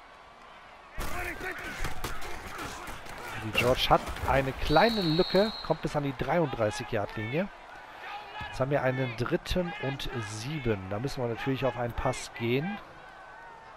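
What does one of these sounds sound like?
A stadium crowd roars and cheers in a large open space.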